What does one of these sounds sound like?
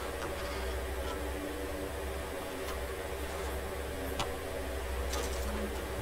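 A cabinet door creaks open.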